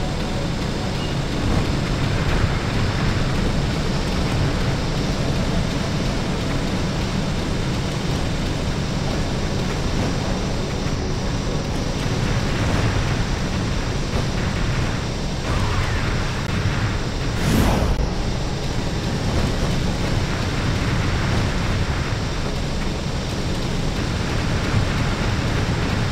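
A flying machine's engine roars steadily.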